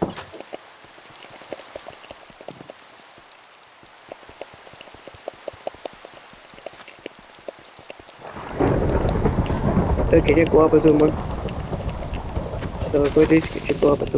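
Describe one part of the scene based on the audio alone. A pickaxe taps and chips at stone in quick, repeated knocks.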